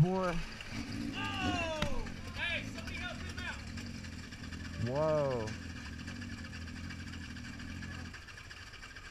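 A motorcycle engine idles with a steady low rumble.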